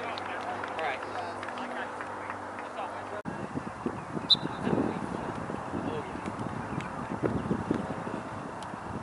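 Men shout from the sideline of a lacrosse game outdoors.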